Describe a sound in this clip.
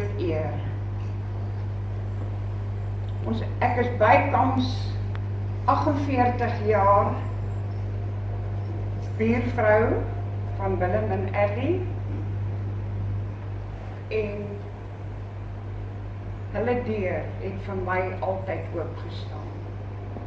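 An elderly woman speaks slowly and clearly through a microphone in a large echoing hall.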